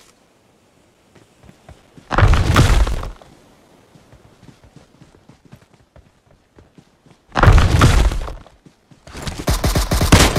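A smoke grenade bursts with a loud whoosh.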